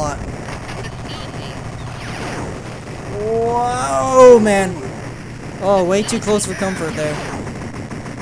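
Rapid electronic gunfire crackles.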